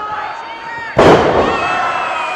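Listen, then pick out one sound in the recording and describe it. A wrestler slams onto a wrestling ring mat with a loud thud.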